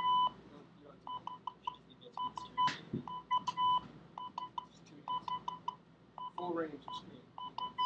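A radio speaker beeps out short and long tones of Morse code.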